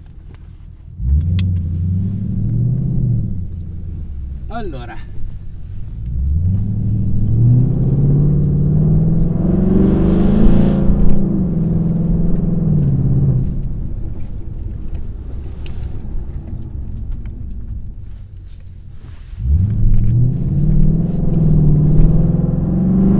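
A car engine revs hard and roars as the car accelerates.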